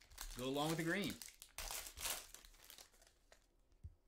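A foil trading card pack crinkles as it is torn open.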